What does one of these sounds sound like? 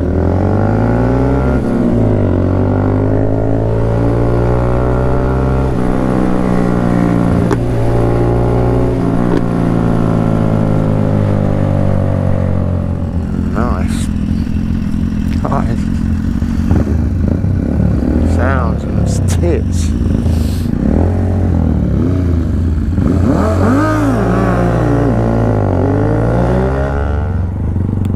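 A motorcycle engine hums close by and changes pitch as it speeds up and slows down.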